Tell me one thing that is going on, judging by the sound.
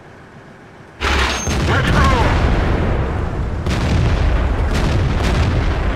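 A tank engine rumbles low and heavy.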